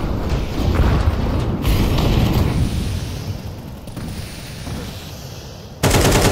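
A smoke grenade hisses steadily as it spreads.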